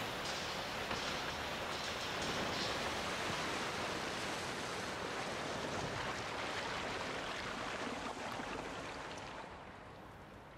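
Liquid pours steadily and splashes into a pool.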